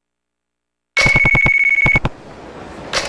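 A phone rings with a short electronic tone.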